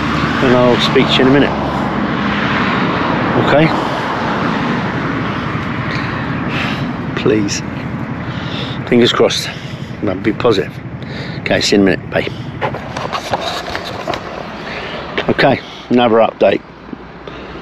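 An elderly man talks close to a microphone.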